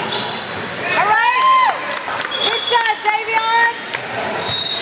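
Players shout to each other in a large echoing gym.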